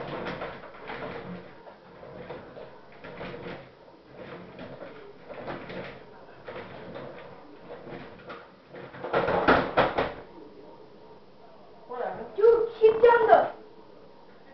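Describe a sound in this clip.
A teenage boy talks nearby, shouting at moments.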